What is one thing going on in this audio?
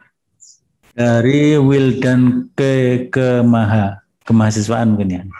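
A middle-aged man speaks calmly and clearly into a close microphone.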